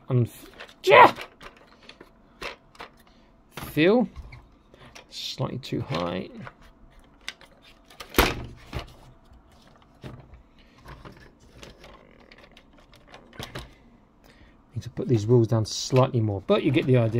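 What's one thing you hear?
Plastic toy parts click and knock as they are handled.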